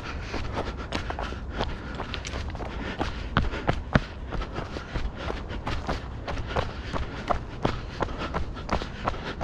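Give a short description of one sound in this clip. Footsteps crunch quickly on a gravel trail.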